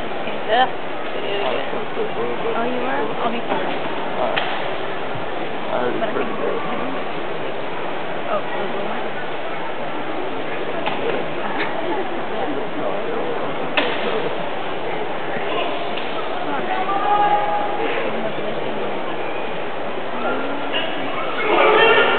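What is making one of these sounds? A large indoor crowd murmurs and chatters throughout.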